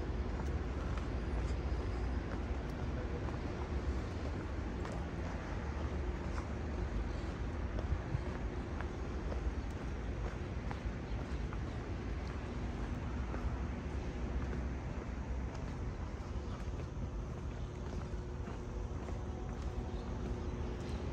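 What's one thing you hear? Footsteps crunch and tap on a stone path.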